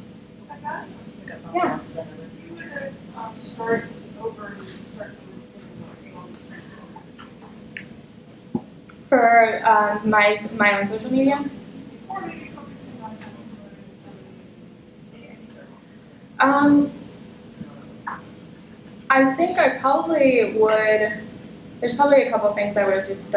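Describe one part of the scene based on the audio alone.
A woman speaks through a microphone and loudspeakers in a large echoing hall, pausing now and then.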